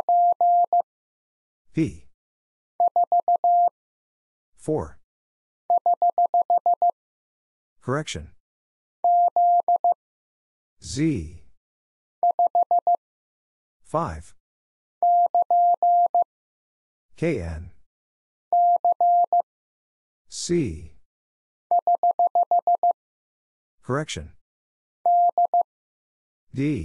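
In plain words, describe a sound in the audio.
A steady electronic tone beeps out Morse code in quick bursts of short and long signals.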